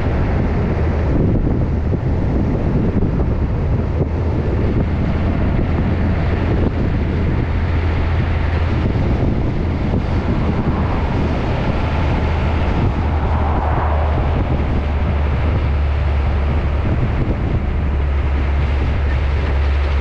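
A truck engine hums steadily with a deep rumble as it drives.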